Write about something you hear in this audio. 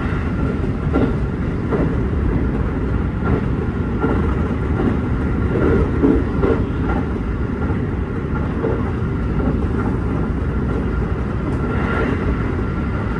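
A train rumbles steadily along the rails.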